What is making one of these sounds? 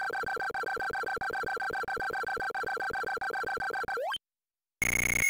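Rapid electronic beeps tick as a game's score counts up.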